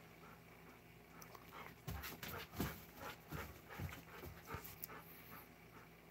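A dog's claws click and scrape on a hard floor.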